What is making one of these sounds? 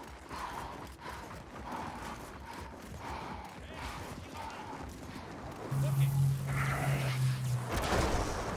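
Heavy footsteps thud quickly on dirt.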